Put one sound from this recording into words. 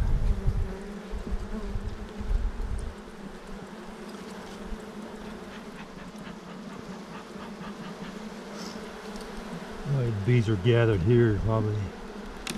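Bees buzz steadily around an open hive.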